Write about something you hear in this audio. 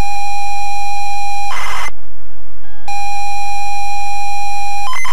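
A computer's tape loading signal sounds as a steady high-pitched whine, broken by a short burst of harsh noise and a brief silence.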